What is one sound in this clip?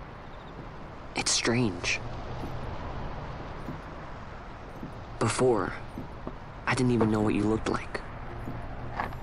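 Footsteps thud softly on a wooden bridge.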